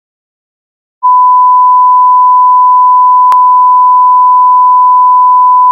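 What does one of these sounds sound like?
A steady, high-pitched broadcast test tone sounds.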